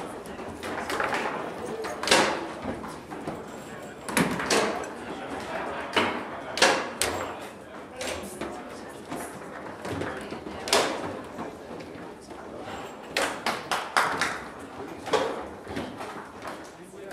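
Foosball rods clack and the ball knocks sharply against the table's figures and walls.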